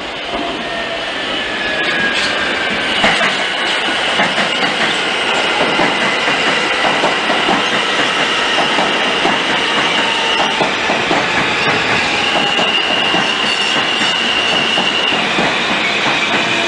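Train wheels squeal against the rails.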